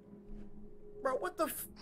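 A man exclaims loudly into a microphone.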